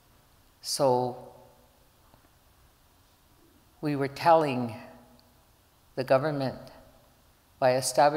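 A middle-aged woman speaks slowly and calmly into a microphone, with pauses between phrases.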